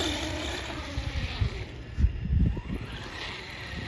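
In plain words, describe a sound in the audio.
Plastic wheels thump and rattle on concrete.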